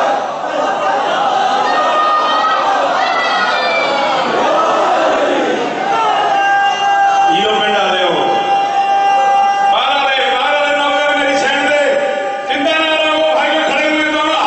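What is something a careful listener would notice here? A man recites loudly and with passion into a microphone, heard through loudspeakers in an echoing hall.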